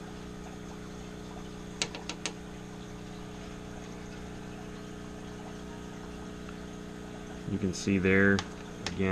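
An aquarium filter hums steadily and quietly.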